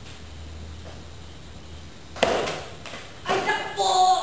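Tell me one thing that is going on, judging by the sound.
A ping-pong ball clicks against paddles and a table.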